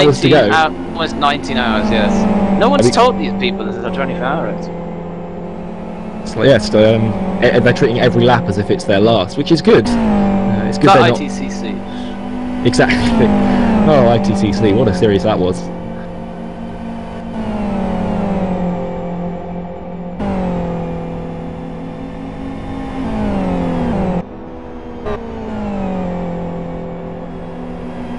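Racing car engines roar steadily, shifting up through the gears.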